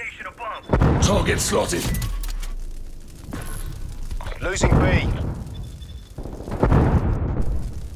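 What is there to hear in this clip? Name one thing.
A rifle fires loud booming shots.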